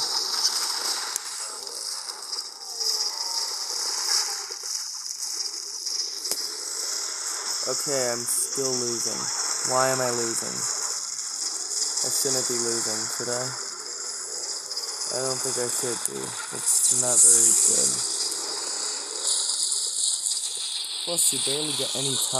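Cartoonish zaps, pops and chimes of an arcade-style game play steadily.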